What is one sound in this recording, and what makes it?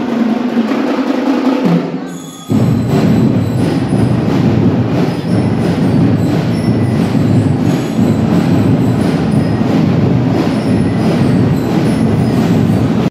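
Loud dance music with a steady beat plays over loudspeakers in a large echoing hall.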